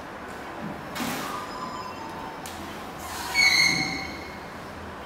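Shoes squeak and shuffle on a wooden floor.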